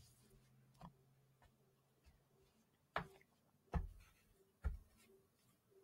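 Cards are shuffled and tapped down on a cloth.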